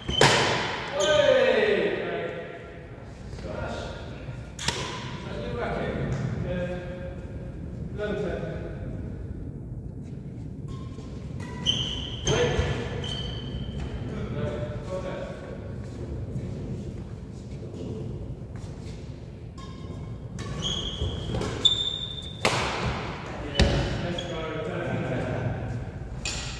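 Men call out and talk nearby in the echoing hall.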